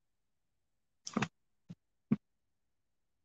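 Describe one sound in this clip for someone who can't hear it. A tablet knocks and taps on a desk as it is turned.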